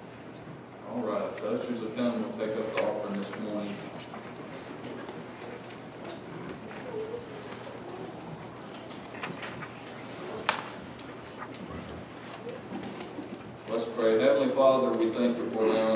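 A middle-aged man speaks through a microphone in a calm, preaching manner.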